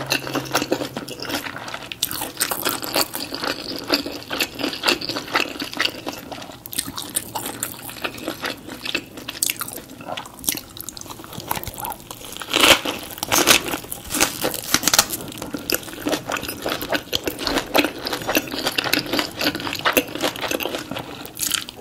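A woman chews food wetly and close to a microphone.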